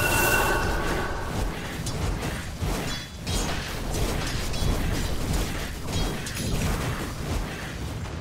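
Spell effects crackle and burst in a fast game battle.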